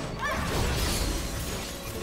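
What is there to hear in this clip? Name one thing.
Electricity crackles and sizzles in a burst.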